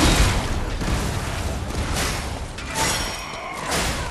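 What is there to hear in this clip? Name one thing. Fire crackles and sparks burst.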